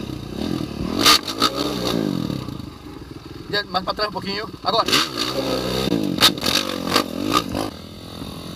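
Plastic and metal parts of a motorbike clatter and knock.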